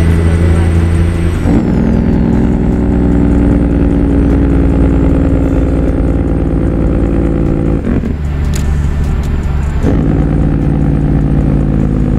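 A truck engine rumbles steadily, its pitch shifting with gear changes.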